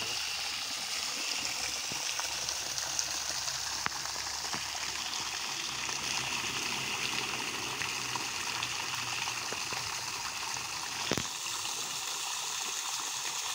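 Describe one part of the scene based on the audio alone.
A jet of water sprays steadily and splashes onto the surface of a pond.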